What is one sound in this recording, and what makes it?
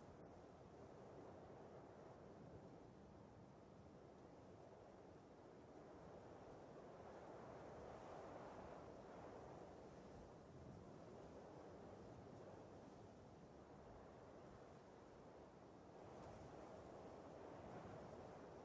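Wind rustles through tall grass.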